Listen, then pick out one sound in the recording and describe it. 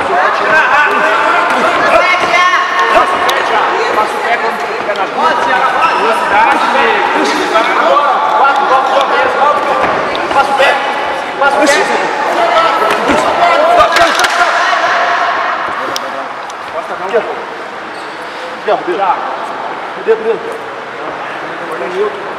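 People chatter in the background of an echoing hall.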